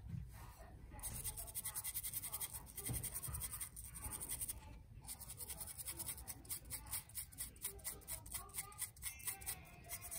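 A small brush scrubs rapidly back and forth over a hard surface, with a dry scratching sound.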